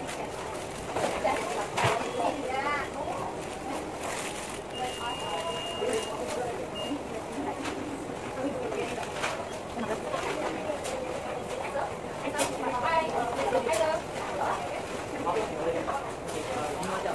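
A young woman talks casually close to the microphone.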